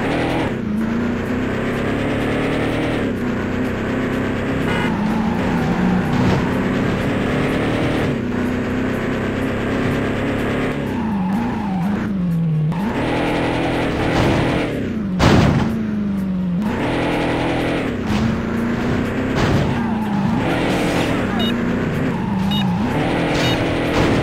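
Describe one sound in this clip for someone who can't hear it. A car engine roars and revs up and down steadily.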